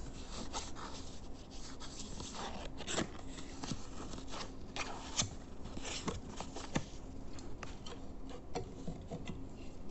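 Paper rustles and crinkles close by.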